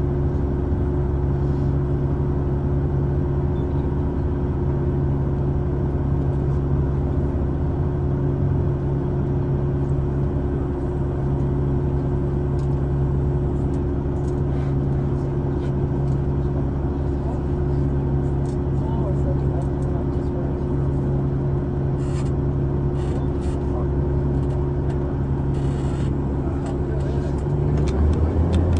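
Dirt and rocks slide and rumble out of a dump truck bed.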